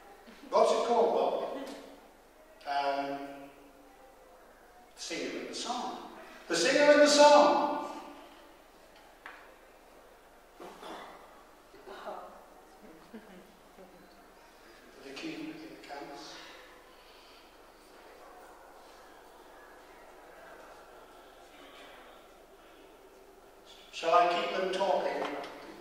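An elderly man speaks animatedly into a microphone in a reverberant hall, with pauses between phrases.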